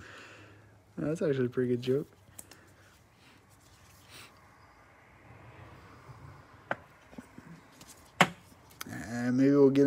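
A plastic card sleeve crinkles and taps as a card slides in and out of it.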